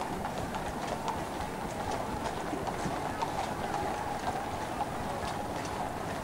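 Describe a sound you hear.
Horse hooves clop steadily on the road.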